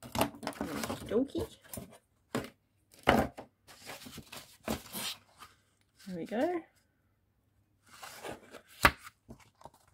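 Stiff paper rustles and creases as it is folded.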